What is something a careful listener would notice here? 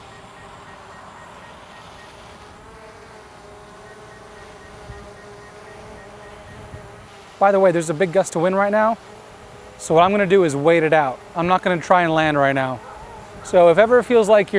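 A drone's propellers whir with a steady hum.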